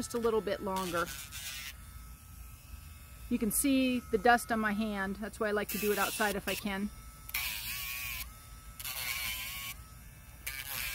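An electric nail grinder whirs in short bursts against a dog's claw.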